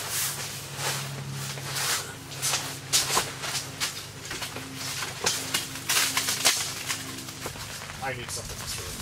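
Metal cot frames click and clatter.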